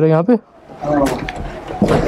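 A door latch clicks as a door opens.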